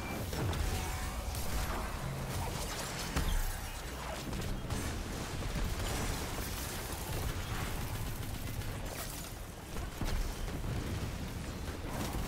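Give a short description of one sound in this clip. Guns fire in rapid bursts with loud energy blasts.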